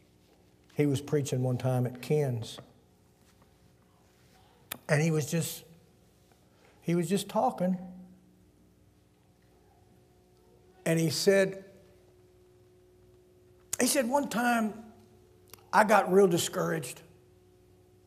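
An elderly man speaks in short bursts into a microphone, with pauses between phrases.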